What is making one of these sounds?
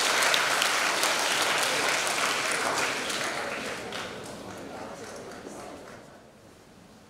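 An audience applauds in a large hall, then the applause fades away.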